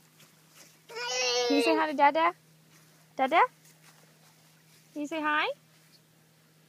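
A toddler squeals and babbles loudly close by.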